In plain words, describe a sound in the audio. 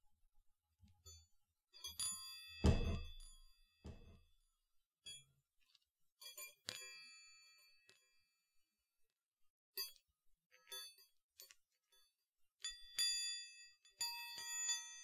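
Hands tap and rustle right up close to a microphone.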